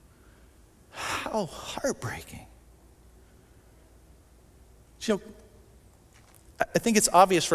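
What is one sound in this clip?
A man speaks expressively in short bursts into a microphone, with pauses.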